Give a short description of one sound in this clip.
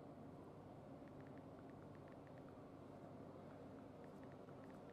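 Soft keyboard taps click quickly.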